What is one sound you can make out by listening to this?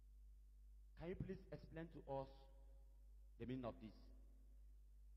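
A man speaks through a microphone.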